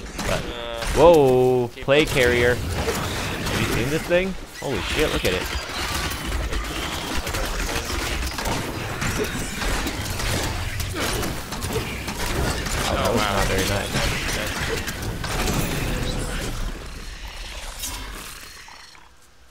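Magic blasts and weapon blows crash loudly in a fierce fight.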